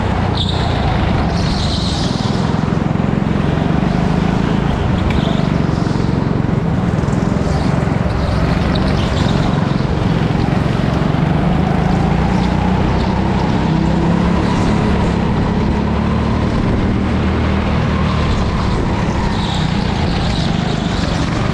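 A go-kart engine drones loudly and steadily close by.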